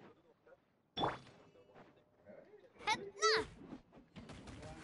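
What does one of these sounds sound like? A sword slashes with loud whooshing blasts.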